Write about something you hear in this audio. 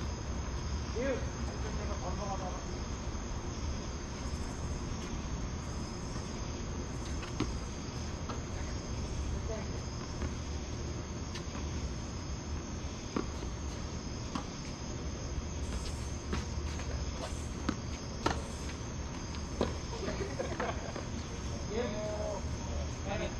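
A man calls out from across an open court.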